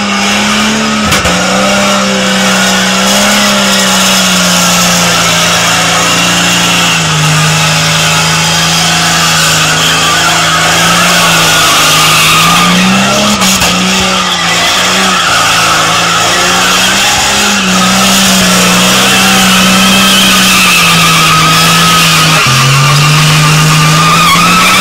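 Tyres squeal and skid on the ground.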